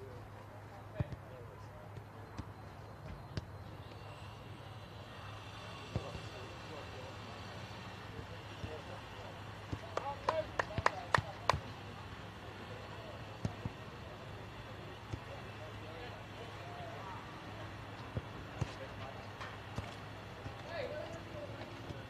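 A football is kicked with dull thuds on a grass pitch outdoors.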